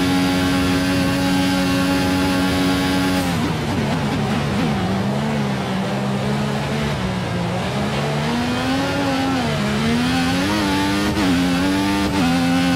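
A racing car engine screams at high revs, drops in pitch as it brakes for a corner, then rises again as it accelerates.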